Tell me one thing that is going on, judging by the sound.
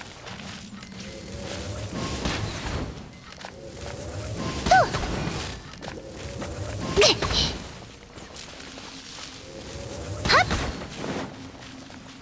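Fiery blasts burst and crackle.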